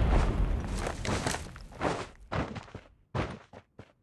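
A vehicle engine roars past.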